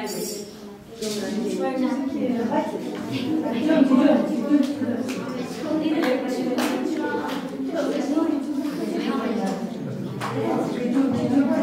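A group of women sing together nearby.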